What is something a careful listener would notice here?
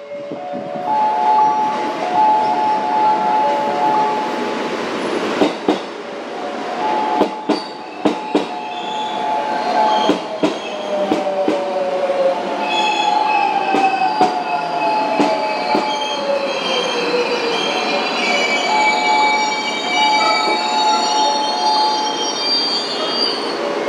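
Train brakes squeal with high, wavering tones.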